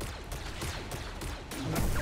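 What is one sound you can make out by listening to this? A blaster fires a shot.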